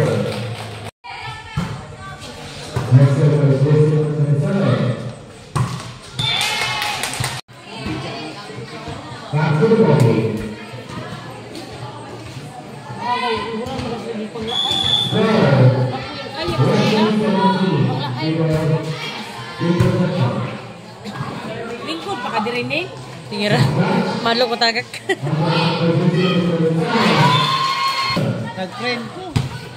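Young women shout and cheer loudly nearby.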